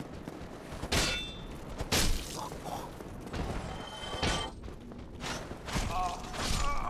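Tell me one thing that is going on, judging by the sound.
A sword clashes against a shield with sharp metallic hits.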